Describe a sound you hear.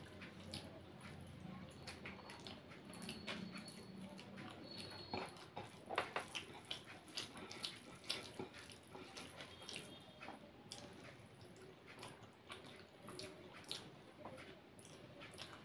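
A woman chews food noisily and smacks her lips up close.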